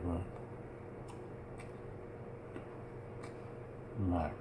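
A man chews food with soft smacking sounds.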